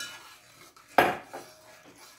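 A spoon knocks sharply against a metal pot.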